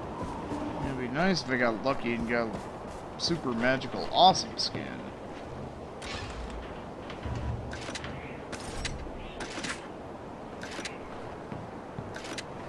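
Footsteps crunch over snow.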